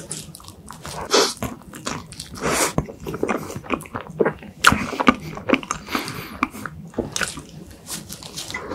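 A young man bites into soft pastry with a squelch.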